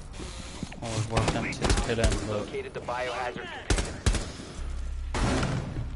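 A rifle fires short bursts of gunshots.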